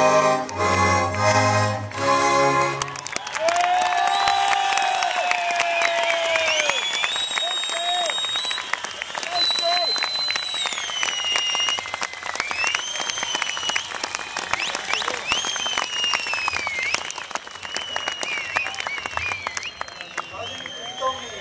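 An accordion plays chords.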